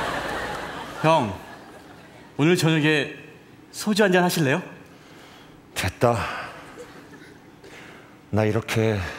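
A young man speaks loudly and with animation.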